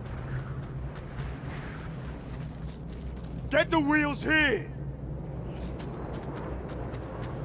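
Footsteps crunch on sand as a man runs.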